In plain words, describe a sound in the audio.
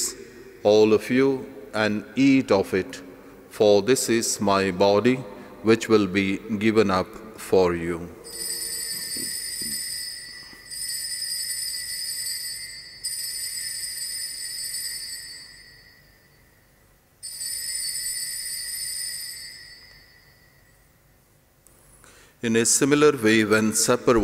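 A man speaks slowly and solemnly through a microphone.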